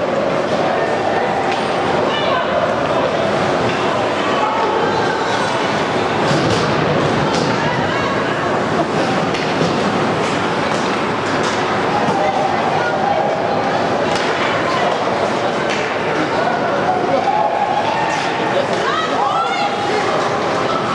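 A crowd of spectators chatters and calls out in an echoing arena.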